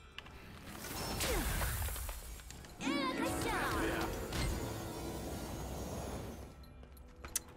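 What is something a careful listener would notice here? Magical blasts whoosh and crackle from a video game.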